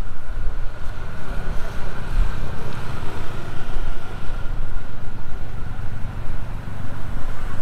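Traffic rumbles along a street outdoors.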